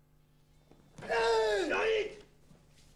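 A man lets out a loud, sharp shout close by.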